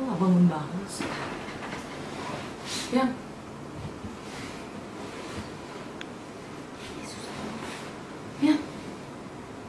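Bedding rustles as a blanket is pulled and shaken.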